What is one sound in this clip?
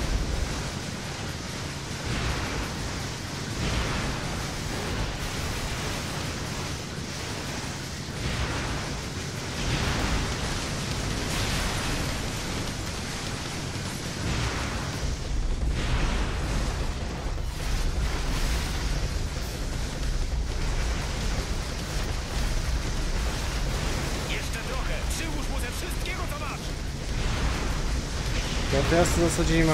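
Explosions boom and rumble one after another.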